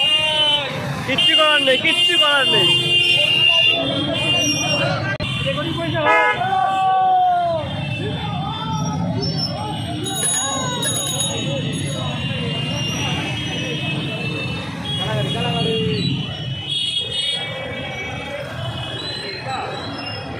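Motorcycle engines rumble and idle close by.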